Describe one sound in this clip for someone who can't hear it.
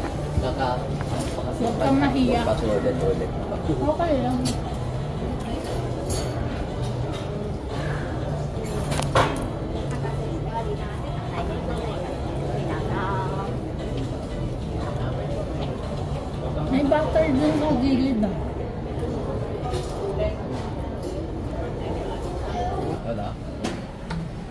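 Diners chatter in the background.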